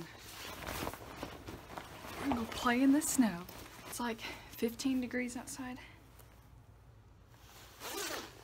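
Fabric rustles as a jacket is handled.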